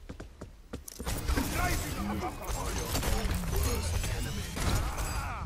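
Gunfire crackles in rapid, loud bursts.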